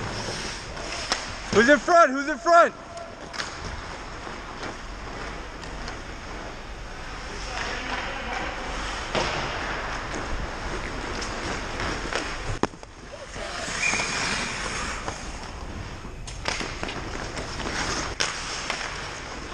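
Skate blades scrape and hiss across ice in a large echoing rink.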